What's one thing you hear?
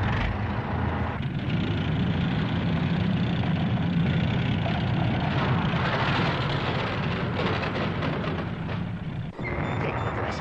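Steam hisses loudly around a vehicle.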